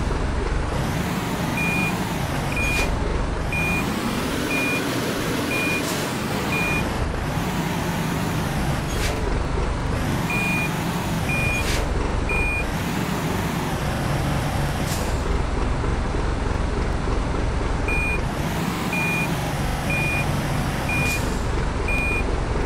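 A truck engine rumbles and revs up and down.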